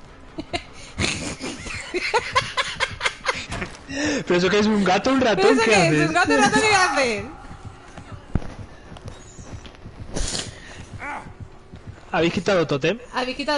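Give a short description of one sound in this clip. A young woman talks animatedly and laughs into a close microphone.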